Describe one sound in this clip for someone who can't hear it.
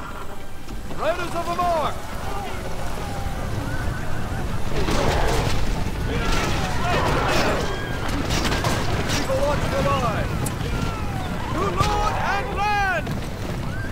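Horses whinny and neigh.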